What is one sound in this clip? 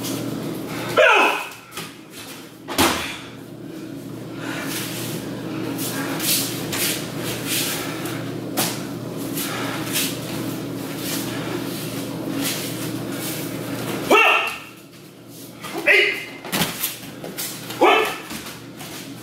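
A man shouts sharply in a hall with echo.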